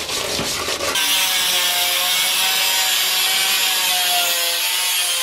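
An angle grinder whines steadily as it cuts through metal.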